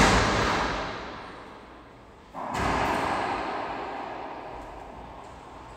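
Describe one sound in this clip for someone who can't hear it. A rubber ball is hit hard and smacks off the walls of a loud, echoing court.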